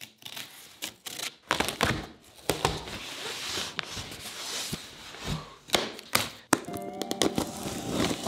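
A knife slices through packing tape.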